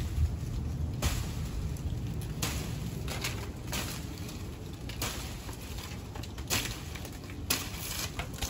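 Leaves rustle as branches are pulled and shaken.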